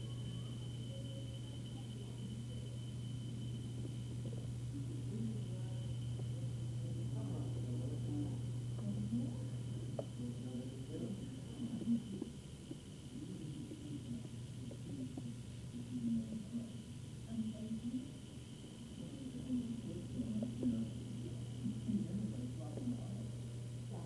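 A television plays quietly in the room.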